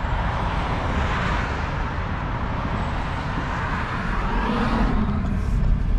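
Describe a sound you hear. Wind rushes past an open car window, then quiets down.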